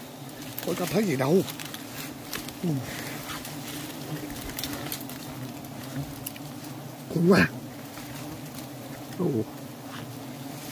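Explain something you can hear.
Bees buzz steadily around a hive.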